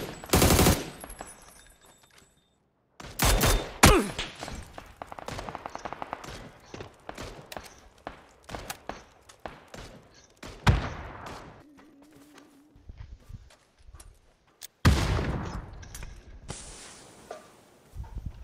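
Footsteps crunch over dirt and dry grass.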